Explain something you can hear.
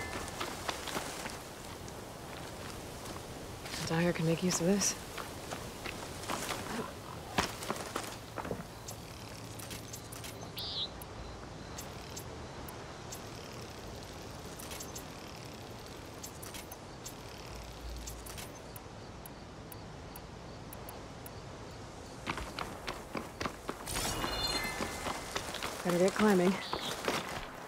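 Footsteps crunch on gravel and rocky ground.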